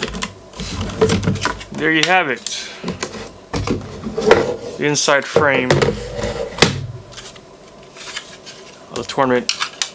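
Plastic parts knock and rattle as hands handle an electronics case.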